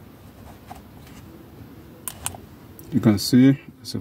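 A car key clicks into a small plastic device.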